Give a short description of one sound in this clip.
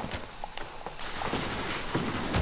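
A wall snaps into place with a hollow clunk.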